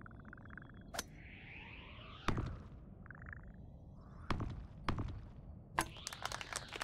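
Sharp electronic pops and whooshes sound as a small object is launched across space.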